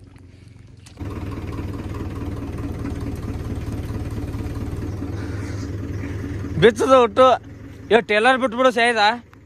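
A tractor engine runs steadily with a low chugging rumble.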